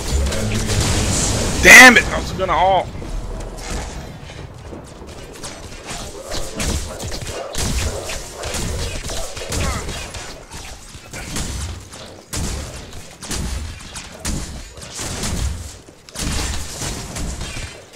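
Weapons clash and magic blasts crackle in a fast fight.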